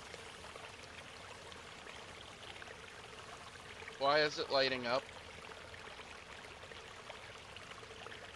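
Water ripples and laps softly.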